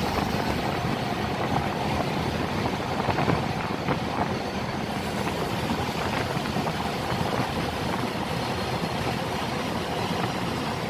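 Water swirls and splashes steadily beside a moving boat.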